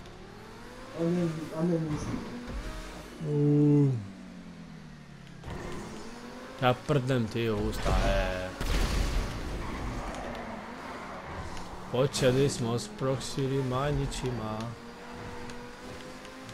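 A sports car engine roars at speed.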